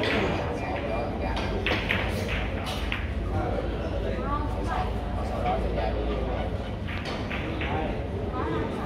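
Several men talk nearby in a room full of chatter.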